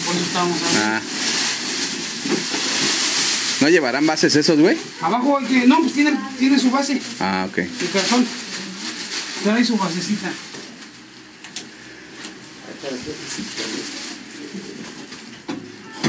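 Plastic sheeting rustles and crinkles.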